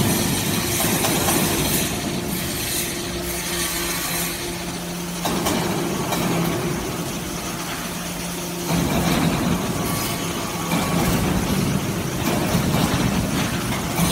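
A hydraulic press hums and whines steadily.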